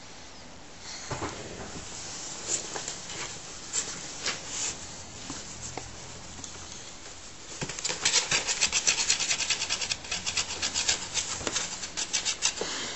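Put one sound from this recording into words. A hand rustles a fleece blanket inside a cardboard box.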